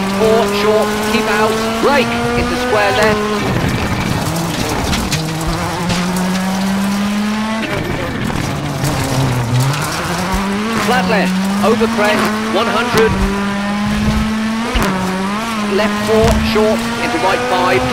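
A rally car engine roars and revs up and down through gear changes.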